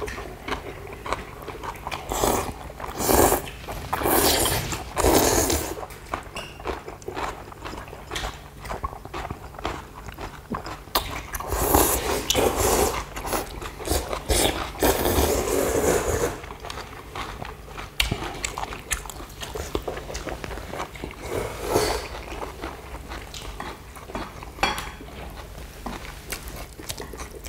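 Chopsticks click against bowls.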